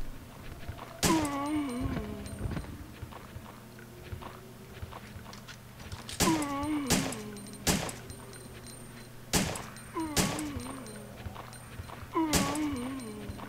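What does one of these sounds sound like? Gunshots ring out one after another, with a short echo.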